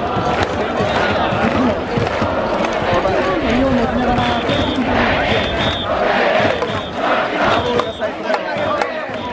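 A large stadium crowd cheers and sings loudly.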